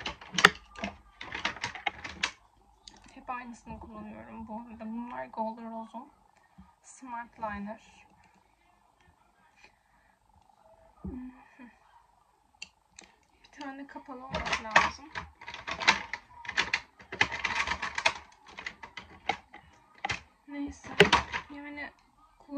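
Makeup pencils click and rattle in a young woman's hands.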